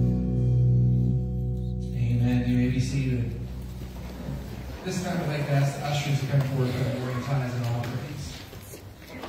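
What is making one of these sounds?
A band plays guitars and keyboard in a large echoing hall.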